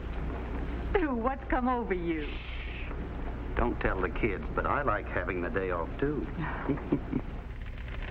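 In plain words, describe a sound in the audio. A middle-aged woman speaks softly and close by.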